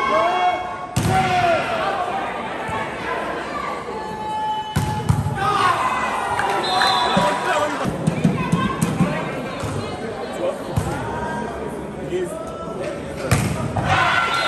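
A volleyball is struck hard with a loud smack.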